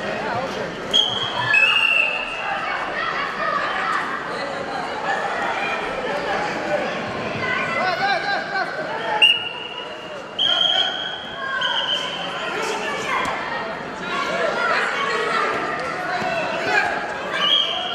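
A referee's whistle blows sharply several times.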